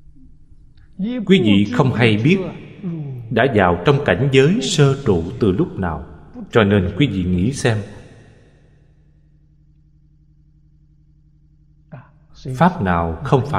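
An elderly man speaks calmly and warmly into a microphone.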